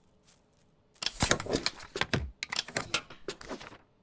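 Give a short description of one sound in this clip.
A rubber stamp thuds onto paper.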